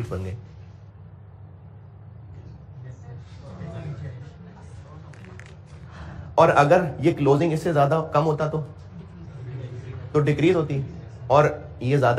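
A middle-aged man lectures with animation through a microphone.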